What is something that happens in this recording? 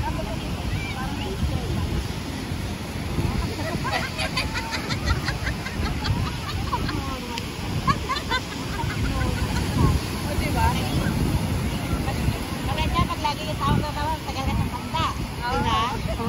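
Waves crash and wash onto the shore nearby.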